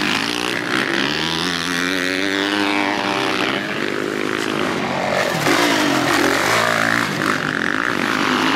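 Motorcycle engines rev loudly and whine up and down in pitch.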